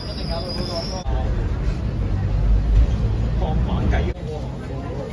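A tram rumbles and rattles along.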